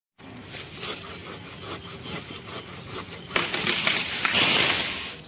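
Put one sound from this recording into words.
A pole saw rasps back and forth through a tree branch, growing louder toward the end.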